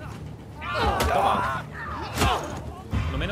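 A heavy blow thuds in a struggle.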